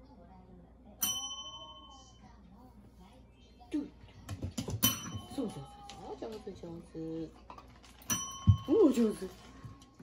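A desk bell dings brightly and rings out.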